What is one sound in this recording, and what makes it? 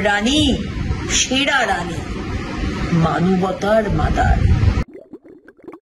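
A middle-aged woman speaks with animation, close to a microphone.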